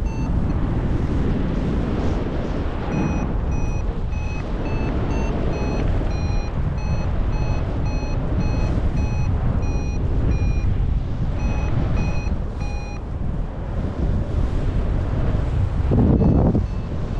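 Wind rushes loudly and buffets steadily past in open air.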